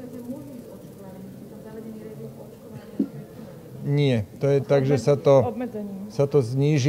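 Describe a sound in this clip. A middle-aged man speaks calmly into microphones in a room with some echo.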